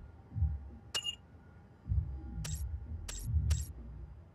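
Menu selection clicks chime sharply.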